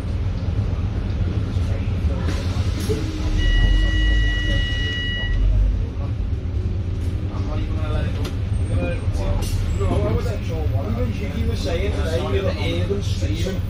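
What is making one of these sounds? A bus engine rumbles steadily from close by.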